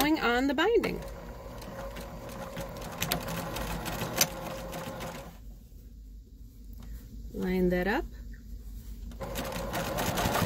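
A sewing machine whirs and stitches steadily.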